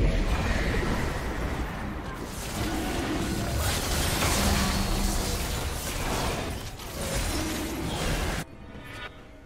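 Magic blasts and weapon clashes of a video game battle crackle loudly.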